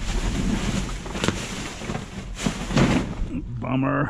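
Plastic bags rustle and crinkle as they are rummaged through.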